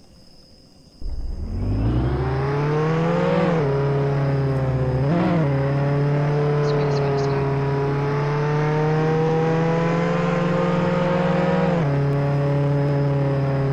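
A car engine starts up and hums steadily, revving briefly now and then.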